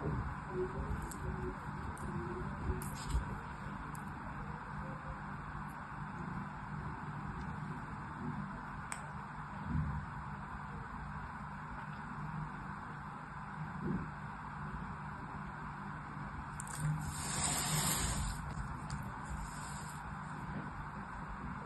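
Soft sand crumbles and rustles between fingers, close by.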